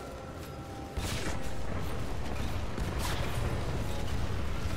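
Debris crashes and clatters.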